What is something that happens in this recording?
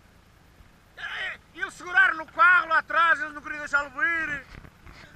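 Men shout loudly nearby.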